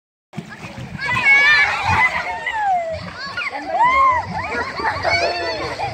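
Children shout and chatter excitedly, close by.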